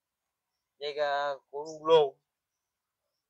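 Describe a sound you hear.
A man speaks briefly up close.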